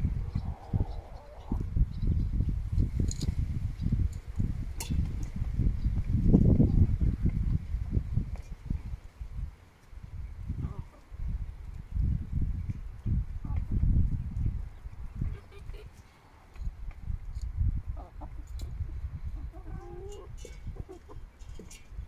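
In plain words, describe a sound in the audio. Chickens cluck softly close by.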